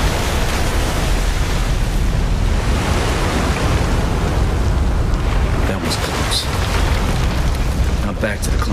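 Flames roar and crackle steadily, with a deep rumble.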